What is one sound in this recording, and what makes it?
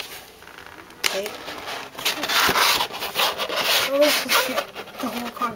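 Plastic wrapping rustles and crinkles right up close.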